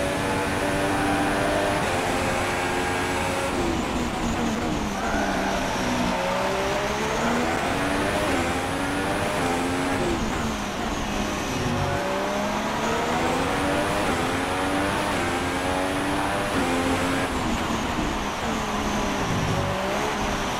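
A Formula One car engine screams, revving up through the gears and dropping down under braking.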